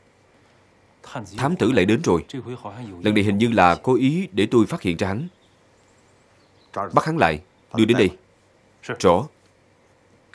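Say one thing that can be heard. A middle-aged man speaks urgently up close.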